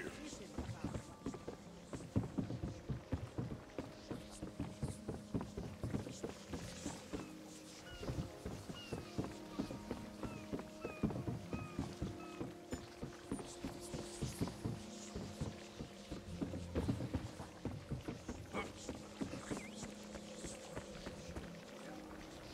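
Quick footsteps thud on wooden boards.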